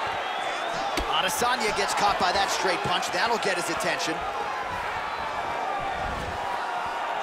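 Punches land with sharp slaps and thuds.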